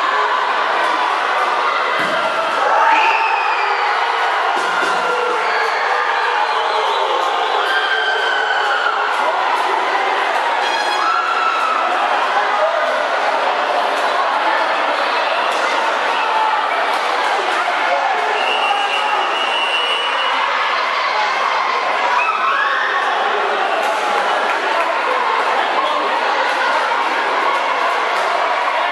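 A crowd shouts and chatters loudly in a large echoing hall.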